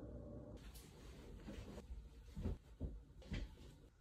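Bed sheets rustle as they are shaken out.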